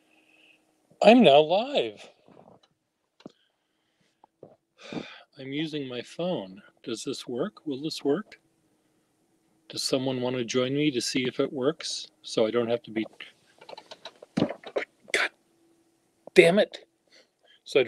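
An older man talks calmly over an online call, in short bursts with pauses.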